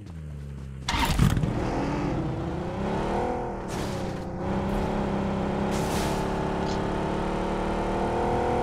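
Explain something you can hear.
A car engine runs and revs steadily.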